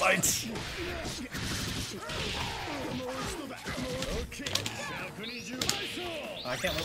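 Punches and kicks land with sharp smacks in a fighting game.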